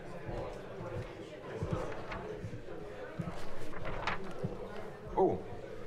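A man speaks calmly into a microphone in a large room.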